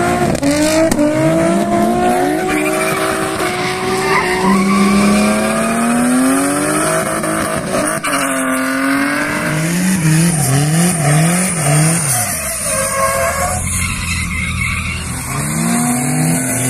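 Car engines rev hard, rising and falling in pitch.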